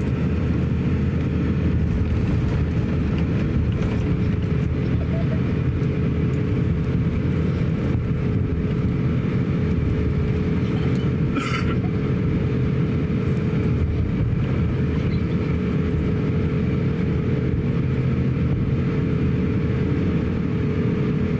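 An aircraft rumbles and rattles as it taxis over the ground.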